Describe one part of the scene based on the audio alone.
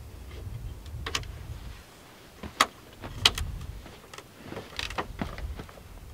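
A folding metal camp table clicks and clatters as it is set up.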